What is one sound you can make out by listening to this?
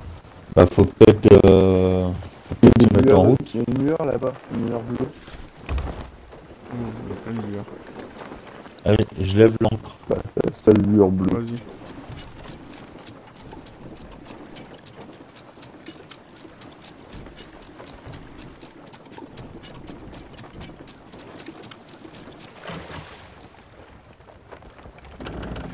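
Water splashes against a wooden ship's hull.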